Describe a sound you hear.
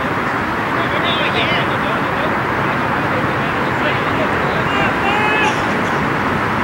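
Young men shout and call to each other across an open field in the distance.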